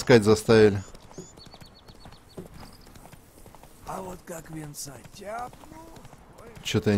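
A horse's hooves clop steadily on a dirt path.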